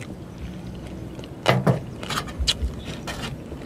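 A man slurps soup from a bowl.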